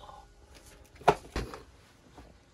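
A paper instant-noodle cup is set down on a desk.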